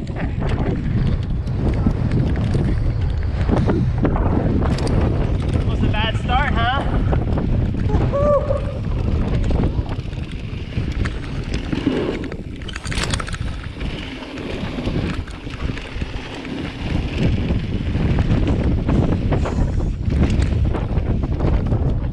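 A bicycle rattles over rough ground.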